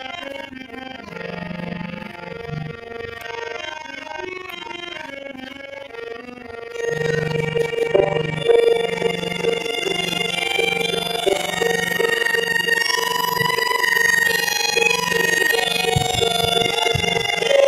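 A drum beats a regular rhythm.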